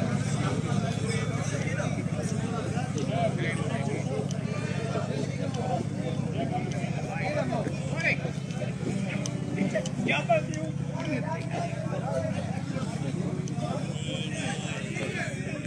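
A group of men and women talk and call out in the distance outdoors.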